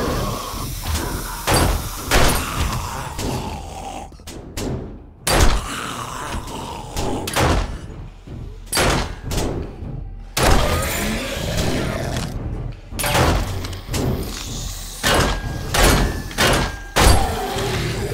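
A pistol fires repeated loud shots that echo in a small room.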